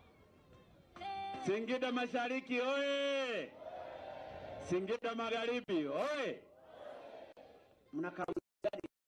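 A crowd sings and cheers outdoors.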